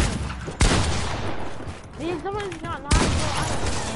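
Gunshots bang loudly in a video game.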